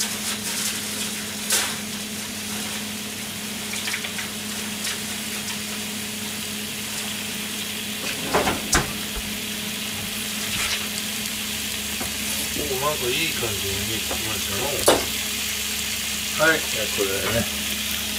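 Meat sizzles and crackles steadily in a hot frying pan.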